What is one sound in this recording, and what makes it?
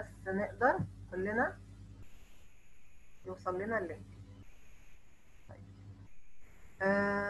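A young woman speaks with animation through a headset microphone over an online call.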